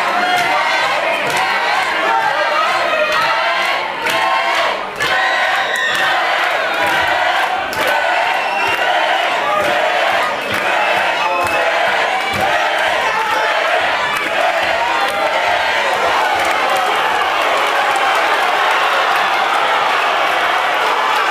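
A large crowd cheers and shouts loudly throughout, echoing in a big hall.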